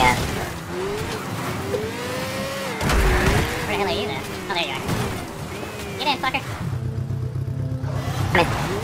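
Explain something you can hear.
A buggy engine drones and revs up and down.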